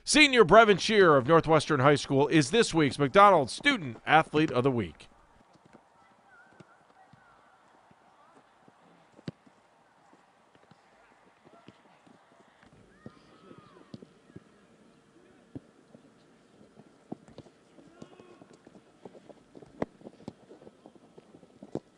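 A football is kicked with soft thuds.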